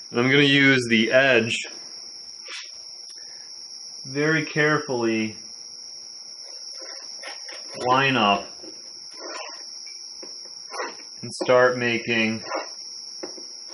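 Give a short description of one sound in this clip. A young man talks calmly close by, in short bursts with pauses.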